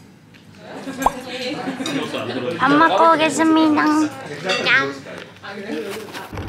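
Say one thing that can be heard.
Young women talk and giggle close by.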